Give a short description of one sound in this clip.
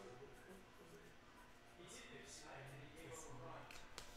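A pen scratches on a card.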